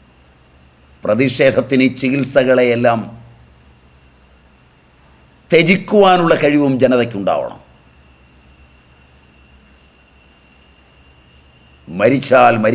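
An elderly man speaks calmly and deliberately, close to a microphone, in short bursts with pauses.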